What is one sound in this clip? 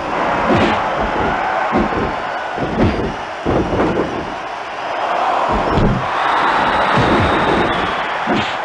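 Punches thud heavily again and again.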